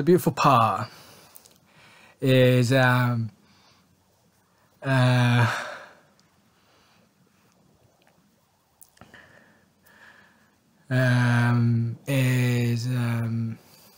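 A man speaks close to a microphone, in short bursts with pauses.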